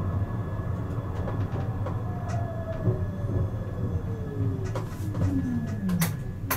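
Tram wheels squeal with a falling whine on the rails.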